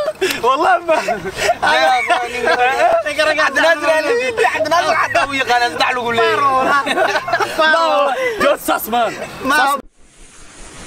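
Young men talk with animation close by.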